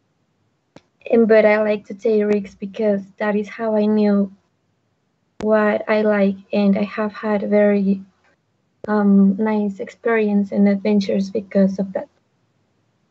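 A woman speaks clearly over an online call, in short phrases with pauses.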